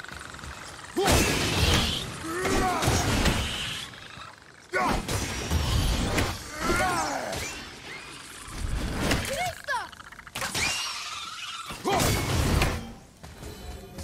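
Heavy blows and clashes of combat ring out in bursts.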